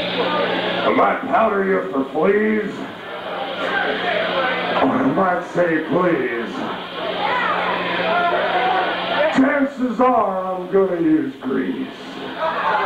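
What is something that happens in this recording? A man sings into a microphone, loud and rough, through a loudspeaker.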